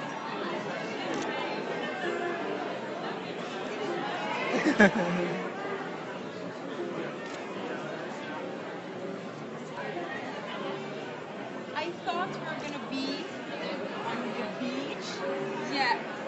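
A murmur of many voices fills a room.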